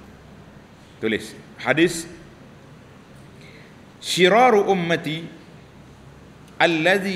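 An elderly man speaks calmly and slowly into a microphone, with pauses.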